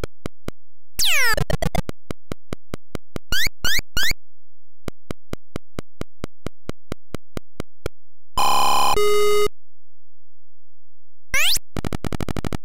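A falling electronic zap sweeps down.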